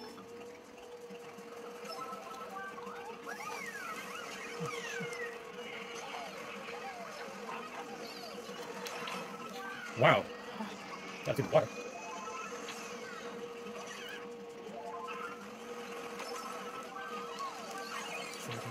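Cheerful game music plays through a television speaker.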